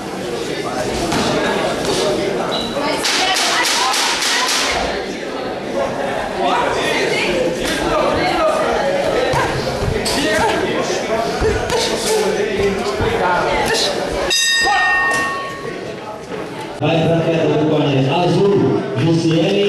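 Shoes shuffle and squeak on a canvas floor.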